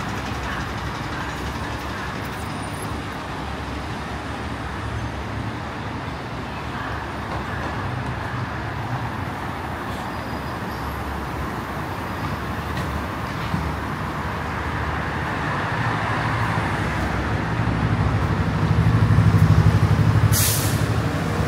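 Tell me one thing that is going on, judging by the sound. Traffic rumbles steadily along a nearby street outdoors.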